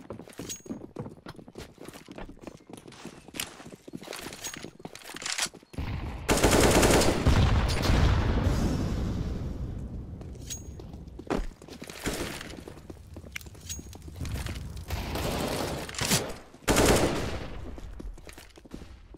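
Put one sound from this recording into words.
Footsteps patter quickly on stone in a video game.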